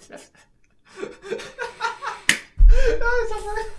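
A second young man laughs close by.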